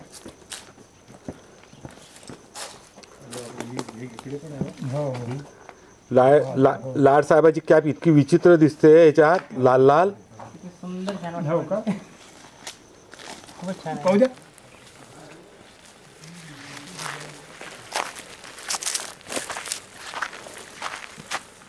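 Footsteps crunch on dry leaves and stones.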